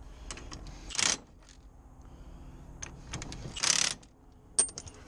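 An impact wrench whirs in short bursts.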